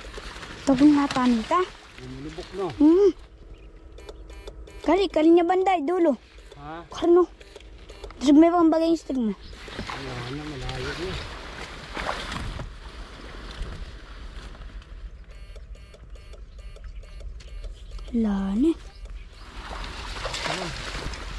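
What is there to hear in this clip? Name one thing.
Leaves rustle and water swishes as a person wades through plants.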